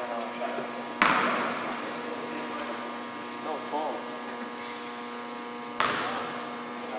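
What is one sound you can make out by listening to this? A basketball thuds against the backboard and floor.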